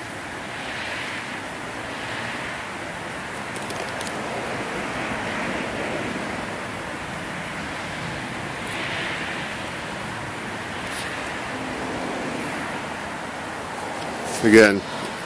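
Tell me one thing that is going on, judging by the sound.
Cardboard tubes scrape and tap together in someone's hands.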